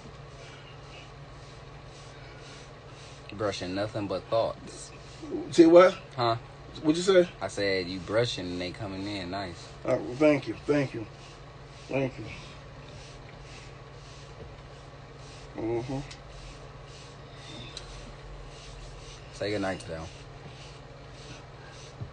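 A hairbrush scrapes rhythmically through hair.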